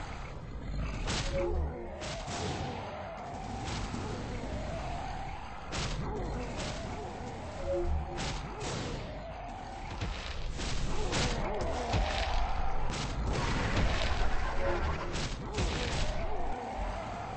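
Game monsters strike each other with repeated sharp hits.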